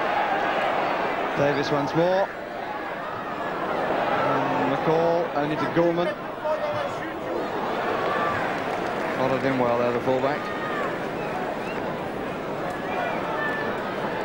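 A large crowd roars and chants loudly in a big outdoor stadium.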